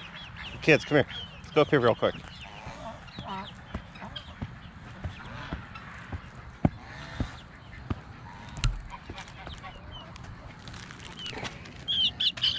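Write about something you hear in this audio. Chickens squawk and cluck outdoors.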